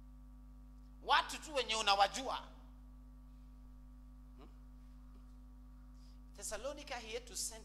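A man preaches with animation into a microphone, heard through a loudspeaker in a large room.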